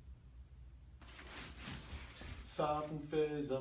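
Bedding rustles as a man sits up.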